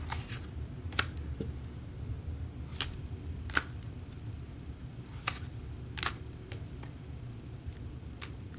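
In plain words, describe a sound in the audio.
Cards slide and tap softly on a table.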